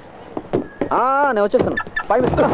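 A young man shouts.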